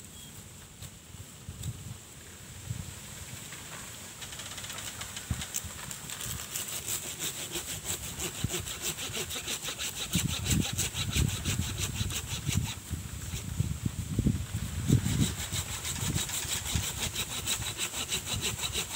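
Dry leaves rustle and crackle close by.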